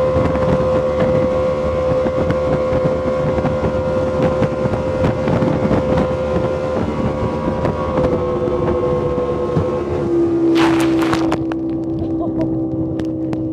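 A boat's outboard motor drones steadily, its pitch dropping slightly.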